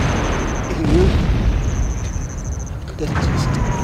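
A man speaks weakly in a hoarse, dying voice, close by.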